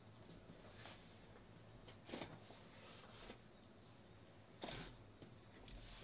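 A blade slices through packing tape.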